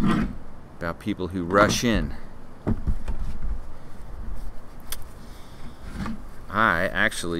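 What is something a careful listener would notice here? A middle-aged man speaks calmly and close to the microphone, outdoors.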